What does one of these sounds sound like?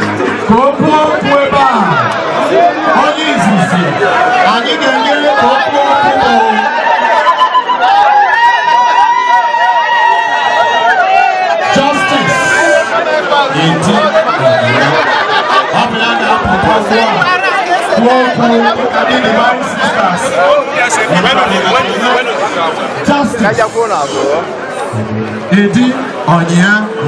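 A crowd of women sing loudly together nearby.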